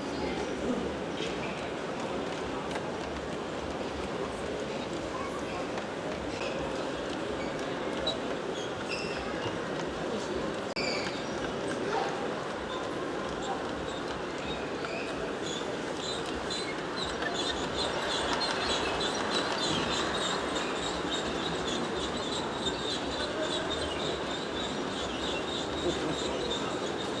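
Model train cars rumble and clatter along the tracks.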